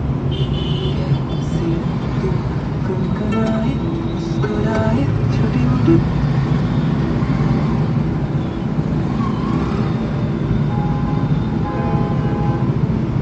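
Traffic rumbles outside.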